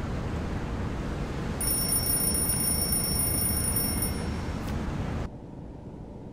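Sea waves wash softly.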